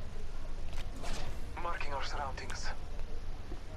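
Gunshots crack nearby.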